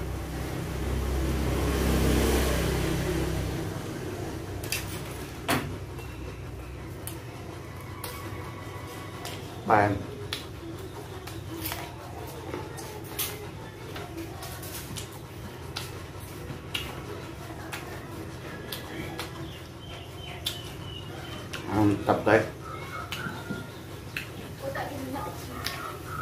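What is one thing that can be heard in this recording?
Fingers squish and pick through rice and food.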